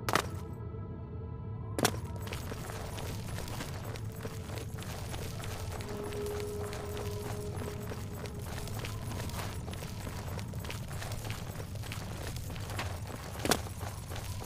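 Footsteps tread steadily on a stone floor.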